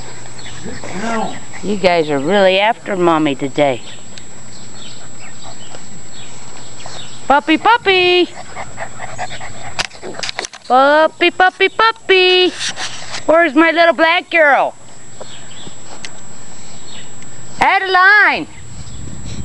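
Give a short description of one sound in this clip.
Puppies yelp and whine in high, bending cries.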